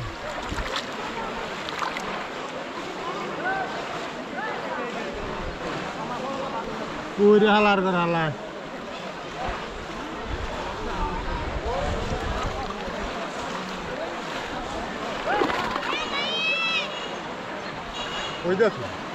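Many people chatter and shout in the distance outdoors.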